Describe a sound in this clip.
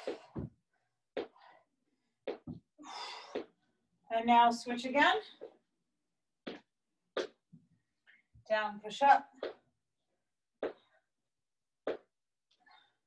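Feet thump and shuffle on a hard floor.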